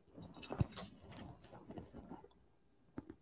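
Fabric rustles softly as it is handled.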